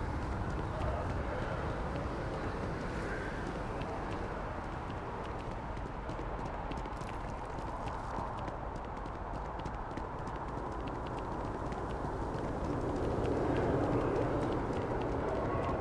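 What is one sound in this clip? Footsteps tread steadily on a hard path.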